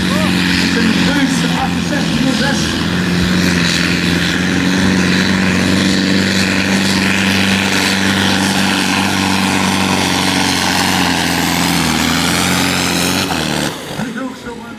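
A tractor engine roars loudly at full power.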